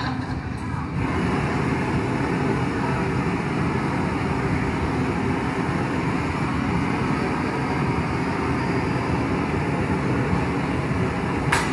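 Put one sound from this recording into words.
A gas torch roars steadily.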